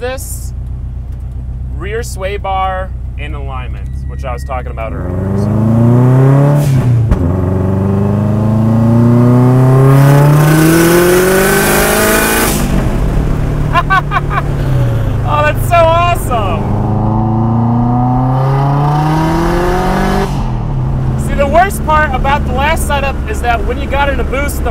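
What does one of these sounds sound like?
A car engine idles, then revs hard and rises in pitch through the gears.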